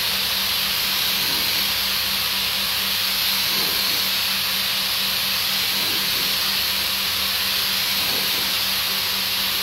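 A pressure washer sprays water with a steady loud hiss.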